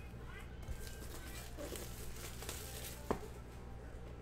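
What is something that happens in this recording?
Plastic wrap crinkles and tears.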